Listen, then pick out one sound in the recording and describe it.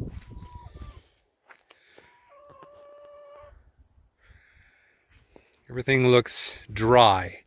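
Footsteps crunch softly on grass.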